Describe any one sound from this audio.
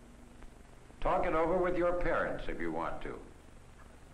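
A middle-aged man speaks calmly and clearly.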